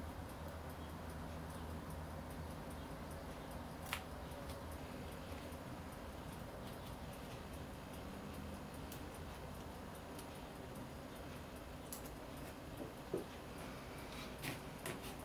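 A small watch movement ticks quickly and softly.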